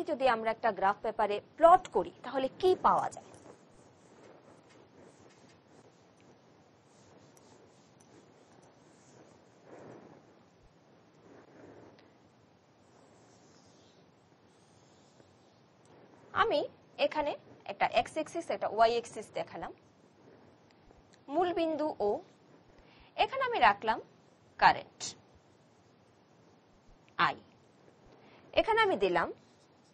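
A woman speaks calmly and clearly into a nearby microphone, explaining.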